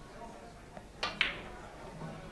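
A cue strikes a billiard ball with a sharp click.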